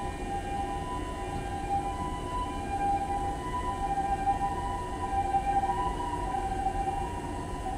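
An electric train stands still with its onboard equipment humming.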